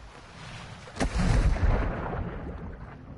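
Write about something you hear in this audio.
Water splashes loudly as a body plunges in.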